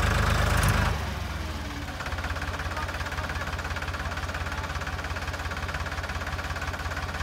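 Tractor wheels churn through thick mud.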